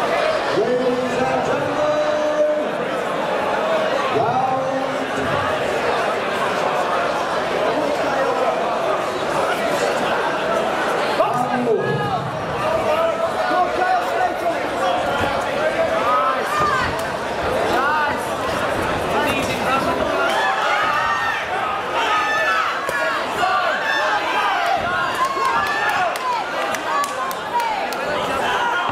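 A crowd talks and cheers throughout in a large hall.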